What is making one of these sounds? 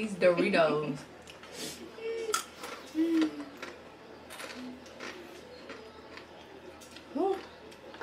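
A woman crunches crisps while chewing.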